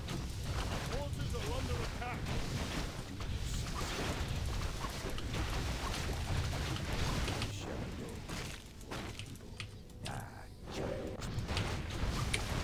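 Game sounds of weapons clashing and spells bursting play throughout.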